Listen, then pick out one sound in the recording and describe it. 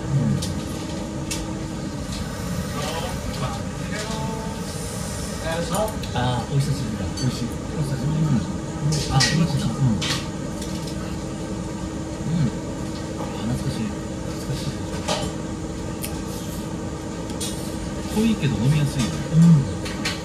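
Chopsticks and a spoon clink against bowls.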